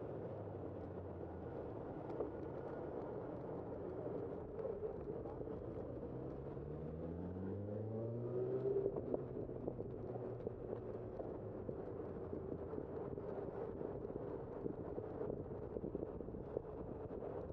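Wheels rattle over a bumpy road surface.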